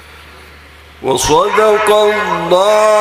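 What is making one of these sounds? A middle-aged man chants loudly through a microphone and loudspeakers, with a strong echo.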